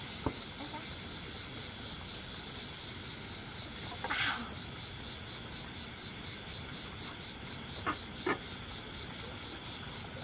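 Metal tongs clink against a cooking pot.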